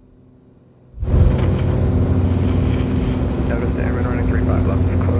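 A small plane's engine drones steadily and loudly.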